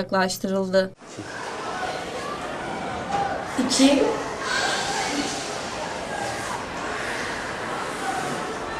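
Many young people chatter and murmur in an echoing room.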